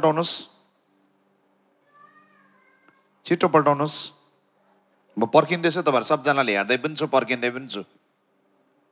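A man speaks with animation through a microphone.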